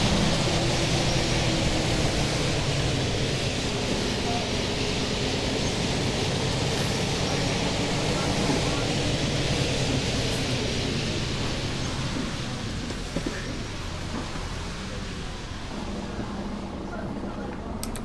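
Tyres roll along the road with a steady rushing noise.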